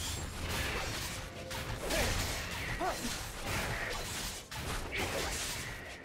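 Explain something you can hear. Game sword strikes and magic blasts clash in quick bursts.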